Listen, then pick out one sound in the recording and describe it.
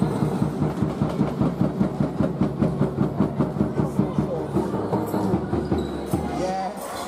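A basketball bounces repeatedly on a wooden floor in an echoing hall.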